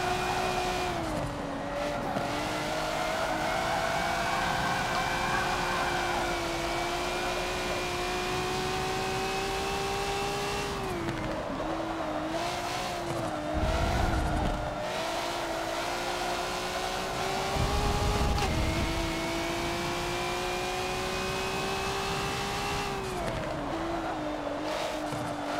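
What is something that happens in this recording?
A car exhaust pops and crackles as the car slows down.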